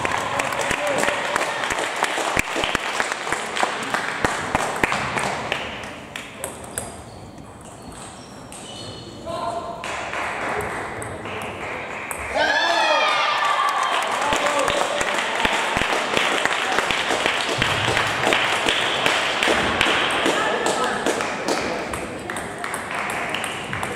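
A table tennis ball clicks back and forth between paddles and table.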